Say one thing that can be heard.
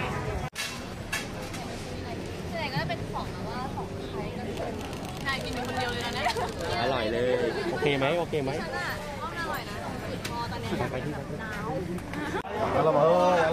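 Young women talk and laugh close by with animation.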